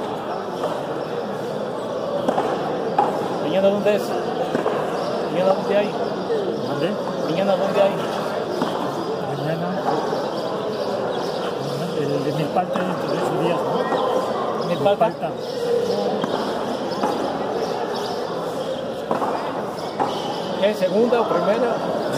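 A hard pelota ball slaps against a concrete wall in an echoing court.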